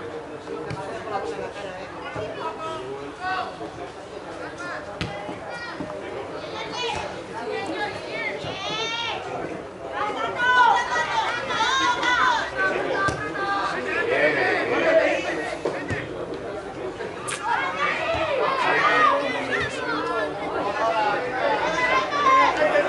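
Young players shout and call to each other across an outdoor pitch.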